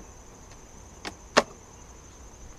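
Wooden hive boxes knock sharply against each other.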